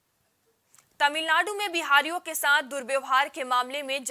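A young woman reads out the news clearly into a microphone.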